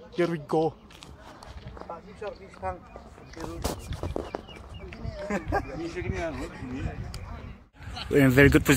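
Young men talk casually close by, outdoors.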